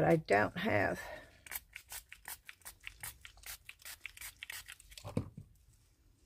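A spray bottle hisses in quick bursts.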